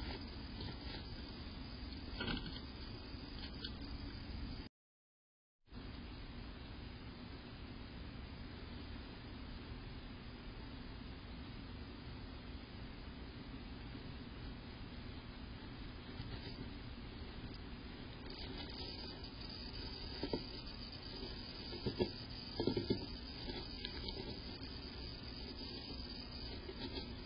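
A small bird rustles dry nesting material.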